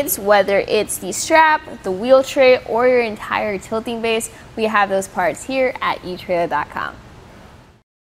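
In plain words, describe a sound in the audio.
A young woman speaks clearly and with animation close to a microphone.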